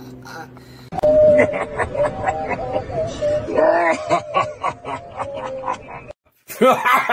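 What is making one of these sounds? A man laughs heartily close to the microphone.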